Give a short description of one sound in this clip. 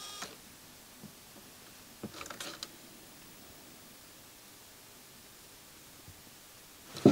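Small plastic and metal parts click as a mechanism is moved by hand.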